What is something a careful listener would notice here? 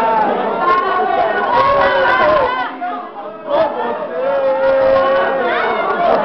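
A young man shouts and sings loudly up close.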